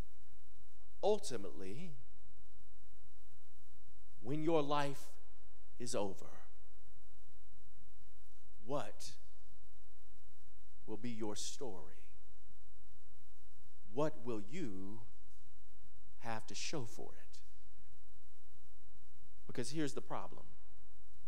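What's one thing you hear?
A man preaches into a microphone in short, emphatic bursts with pauses between them.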